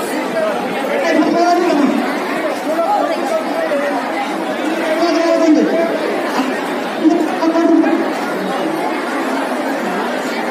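A large crowd chatters in a loud, busy hubbub.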